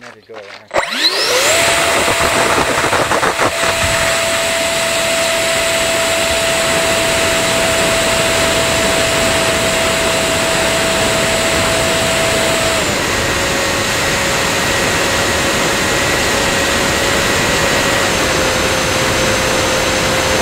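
Wind rushes loudly past the plane.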